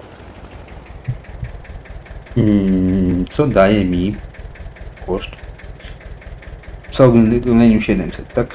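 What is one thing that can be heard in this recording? A tractor engine rumbles steadily at low speed.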